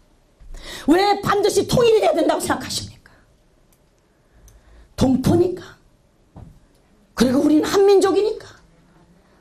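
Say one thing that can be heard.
A middle-aged woman speaks with animation into a microphone, in short bursts.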